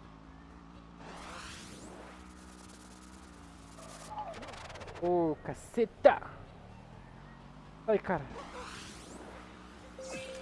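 A speed boost whooshes past.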